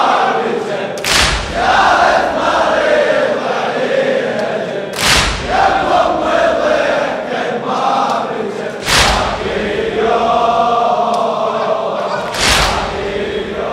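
A crowd of men strikes their chests in slow, heavy beats.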